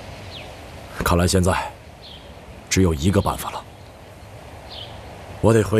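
A man speaks calmly and seriously nearby.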